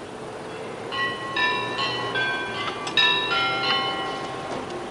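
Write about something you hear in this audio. Church bells ring out.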